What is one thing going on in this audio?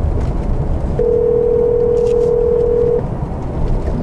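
A phone call's ringing tone sounds through car speakers.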